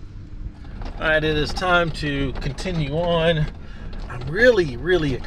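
A middle-aged man speaks with animation inside a vehicle, heard close.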